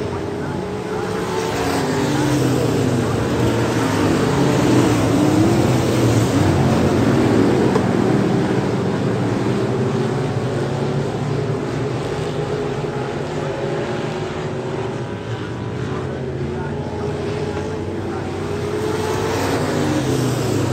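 Many race car engines roar loudly around a dirt track, rising and falling as the cars accelerate and slow in the turns.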